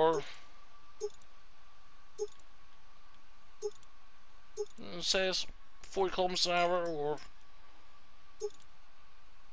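Short soft menu clicks sound now and then.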